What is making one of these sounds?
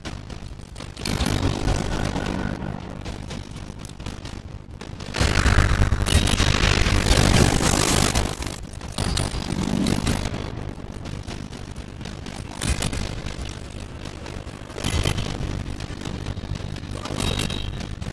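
Game battle effects crash and boom in loud bursts.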